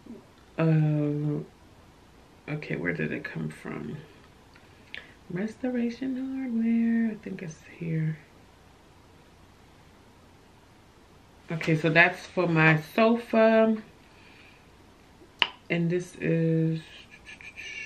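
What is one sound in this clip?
A young woman speaks calmly and expressively close to a microphone, with pauses.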